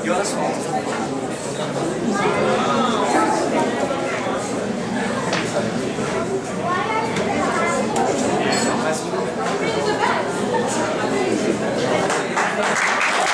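Several men talk and laugh into a microphone.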